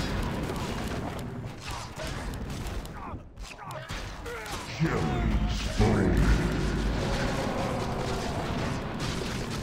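Game spells and fighting clash and whoosh.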